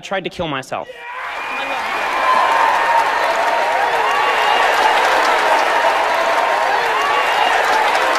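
A large audience applauds and cheers loudly.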